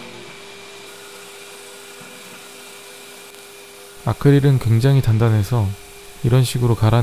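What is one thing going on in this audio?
Plastic grinds against a spinning sanding disc.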